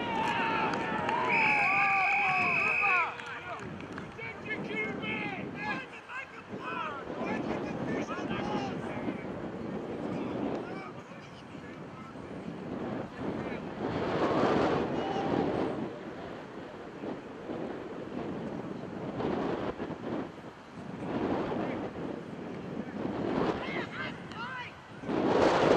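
Players shout and call out across an open field.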